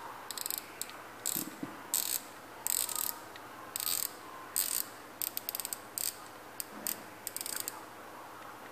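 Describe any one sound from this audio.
A fishing reel's spool clicks and whirs as fingers turn it in short bursts.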